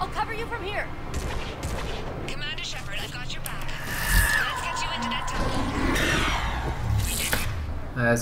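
A gun fires rapid energy shots.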